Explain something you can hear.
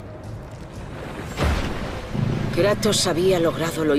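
A fiery blast bursts with a deep boom.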